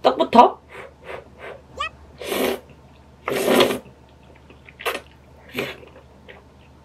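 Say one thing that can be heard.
A young woman slurps noodles loudly.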